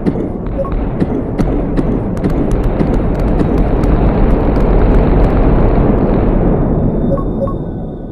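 Explosions rumble and boom continuously.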